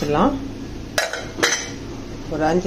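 A metal lid clinks onto a pot.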